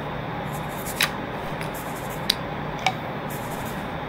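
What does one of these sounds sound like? Shells click as they are loaded into a shotgun.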